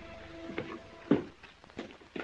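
A door shuts with a knock.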